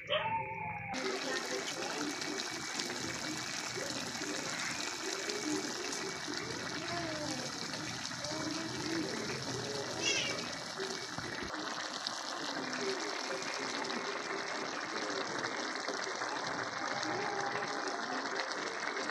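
A thick stew bubbles and simmers in a pan.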